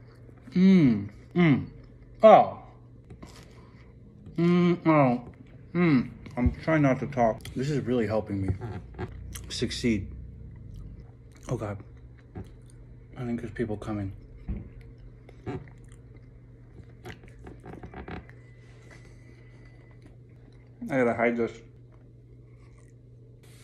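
A man chews and munches on food.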